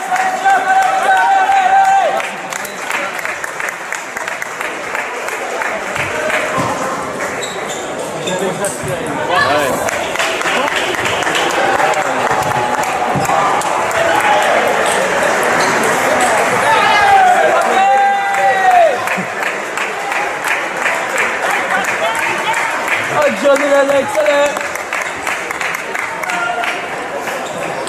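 A crowd of people murmurs and chatters in the background.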